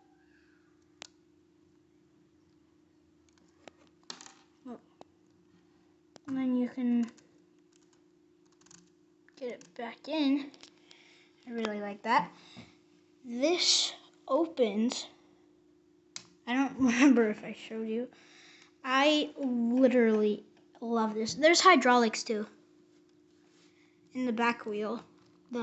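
Small plastic toy parts click and rattle under a hand.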